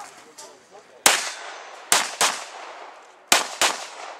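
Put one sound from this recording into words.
A pistol fires a series of shots outdoors, each ringing briefly off earth banks.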